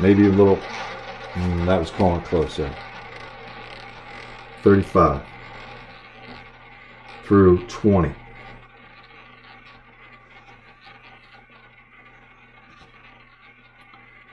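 A roulette ball whirs and rattles around a spinning wheel.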